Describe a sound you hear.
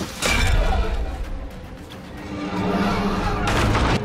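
A heavy wooden pallet slams down with a crash.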